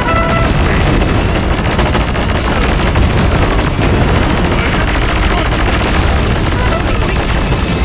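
Guns fire and explosions boom in a battle.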